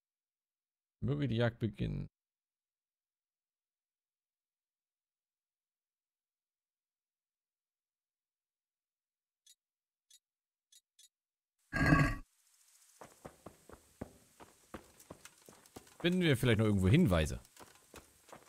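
A young man speaks briefly into a close microphone, calmly, in short bursts.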